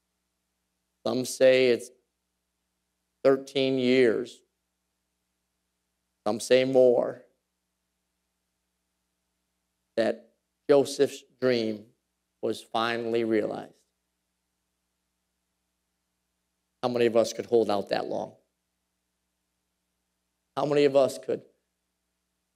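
A man preaches through a microphone in short, emphatic bursts with pauses between.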